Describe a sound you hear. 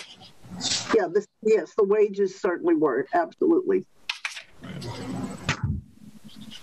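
An elderly woman speaks over an online call.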